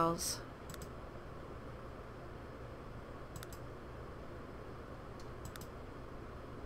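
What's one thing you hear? Soft interface clicks sound as options are chosen.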